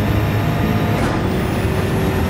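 A racing car's gearbox clicks through a quick upshift.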